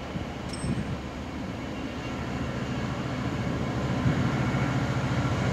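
Wheels of a long freight train clatter over rail joints.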